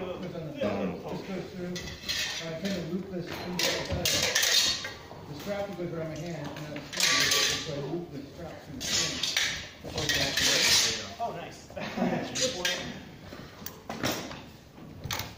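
A man talks calmly nearby in a large echoing hall.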